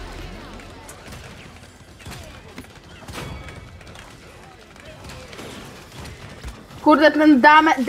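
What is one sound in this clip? Weapons fire in quick bursts with sharp blasts.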